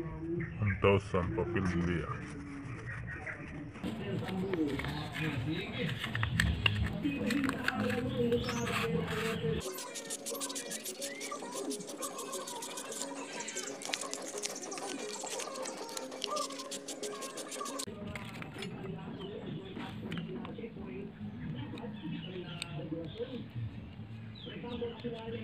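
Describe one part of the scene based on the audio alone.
Small metal clicks and scrapes sound as a motor part is turned by hand.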